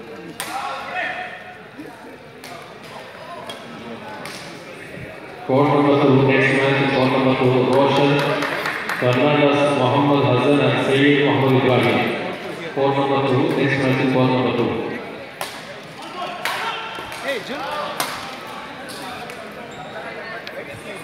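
Badminton rackets strike a shuttlecock in an echoing indoor hall.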